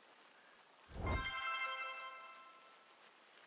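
A bright electronic chime rings out and fades.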